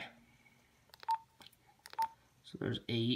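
Short electronic beeps sound as keys are pressed on a handheld radio.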